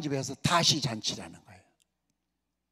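A man speaks with animation into a microphone, his voice carried over loudspeakers.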